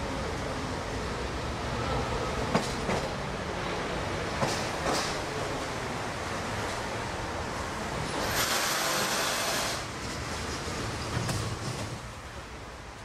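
An electric metro train rumbles and pulls in to a platform.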